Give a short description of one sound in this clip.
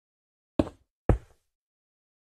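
Stone blocks are placed with short thuds.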